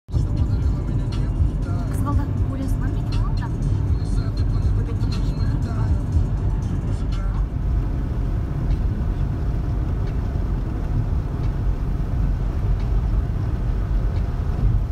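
A car hums steadily as it drives along a road.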